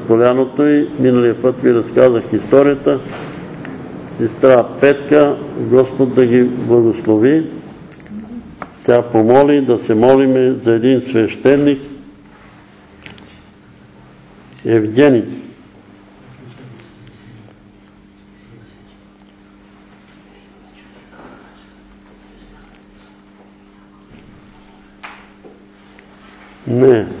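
An elderly man reads aloud from a paper.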